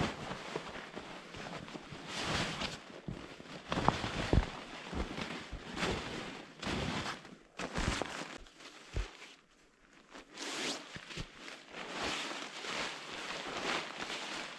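Nylon fabric rustles and swishes as a stuff sack is handled.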